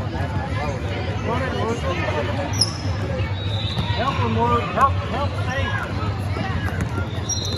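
A basketball bounces on a hardwood court in a large echoing gym.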